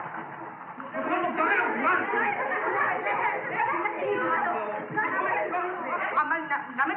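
A crowd of men and women shouts excitedly.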